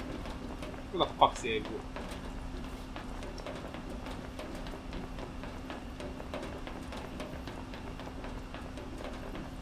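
Footsteps clank quickly on a metal grating.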